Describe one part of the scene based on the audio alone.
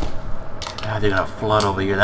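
A rifle's magazine clicks out during a reload.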